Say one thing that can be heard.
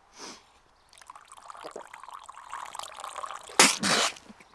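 Coffee pours and splashes into a paper cup.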